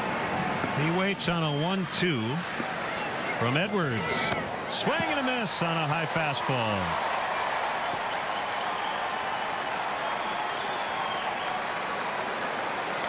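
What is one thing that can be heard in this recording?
A large crowd murmurs outdoors in a stadium.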